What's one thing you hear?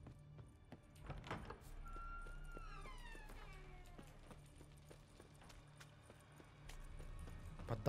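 Footsteps tread on wooden and stone floors.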